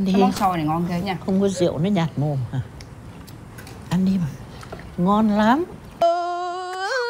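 A woman speaks earnestly nearby.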